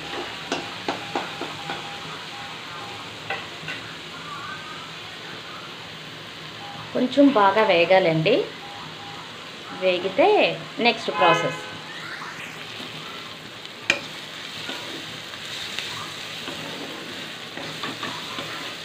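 Food sizzles softly in a hot wok.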